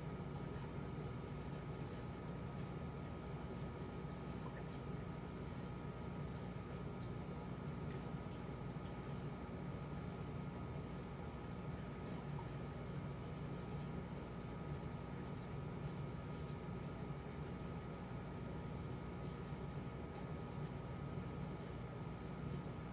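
Air bubbles bubble and gurgle steadily in water.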